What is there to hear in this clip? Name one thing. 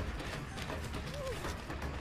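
Footsteps run over rough ground.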